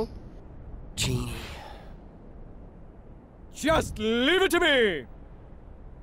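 A young man speaks hesitantly.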